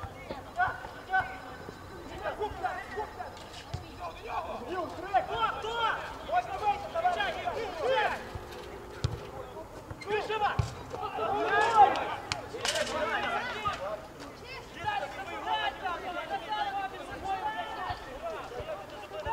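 Young men shout to each other across an open field outdoors.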